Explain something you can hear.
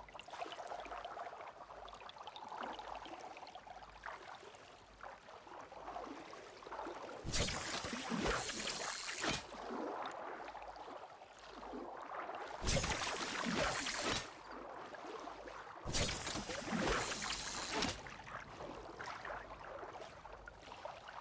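Water laps gently against a shore.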